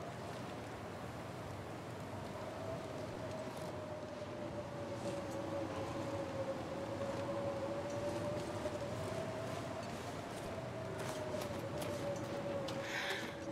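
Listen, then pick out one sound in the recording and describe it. A blizzard wind howls steadily outdoors.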